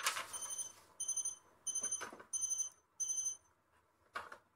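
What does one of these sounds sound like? An electronic device beeps several times in short bursts.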